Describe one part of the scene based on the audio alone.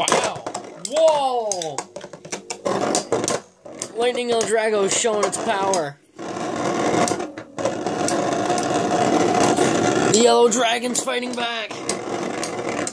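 Spinning tops clack sharply against each other.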